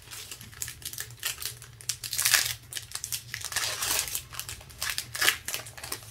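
A foil wrapper crinkles and rustles as hands tear it open.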